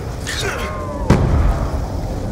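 A knife strikes with a heavy, sudden thud.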